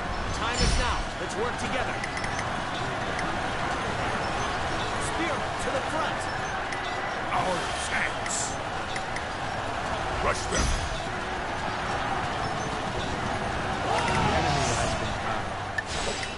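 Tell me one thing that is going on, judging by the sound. A large crowd of soldiers clashes and roars in a noisy battle.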